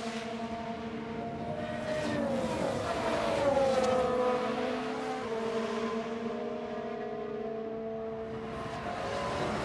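Racing car engines whine at high revs as the cars speed past.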